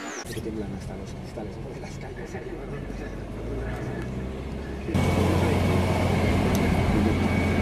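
A car engine hums steadily from inside a moving vehicle.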